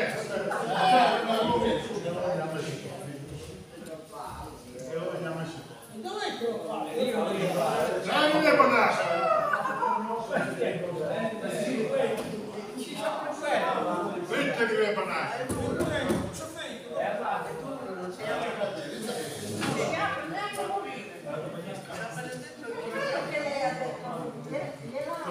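Elderly men talk nearby with animation.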